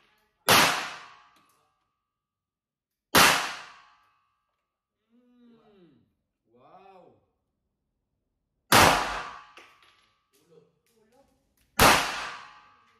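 A pistol fires sharp, loud shots that ring out in a small room.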